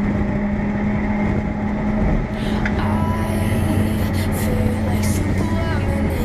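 Wind rushes past an open car cockpit.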